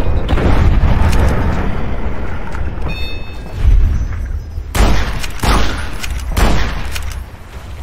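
A rifle's lever clacks as it is worked.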